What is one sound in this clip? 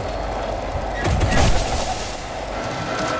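Electricity crackles and buzzes in a short burst.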